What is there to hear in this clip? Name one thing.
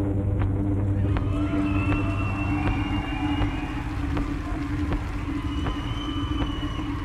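A band plays slow, droning music on stage.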